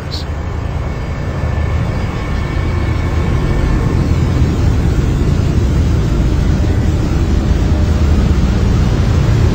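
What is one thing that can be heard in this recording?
Strong wind roars across open water.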